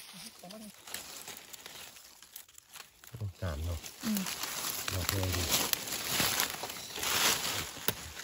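Dry leaves rustle and crackle close by.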